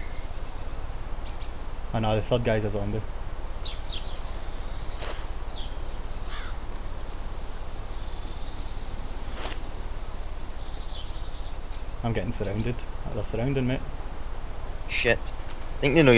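A soldier crawls through grass with a soft rustle.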